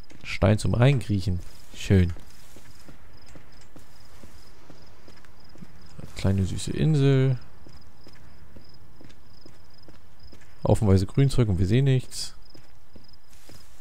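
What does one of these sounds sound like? Footsteps crunch on loose ground.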